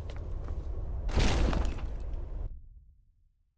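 A heavy stone door grinds open with a rumble.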